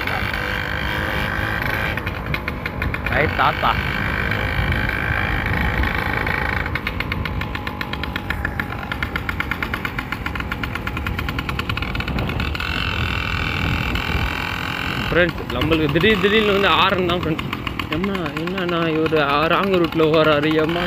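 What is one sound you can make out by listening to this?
A motorcycle engine hums and passes close by.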